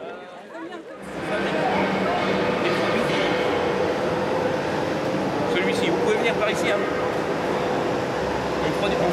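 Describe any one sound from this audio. A middle-aged man speaks with animation through a microphone and loudspeaker in a large, noisy hall.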